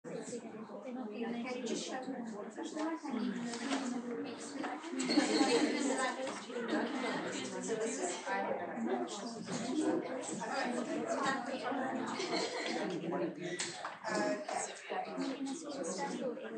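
A woman speaks calmly, heard from across a room.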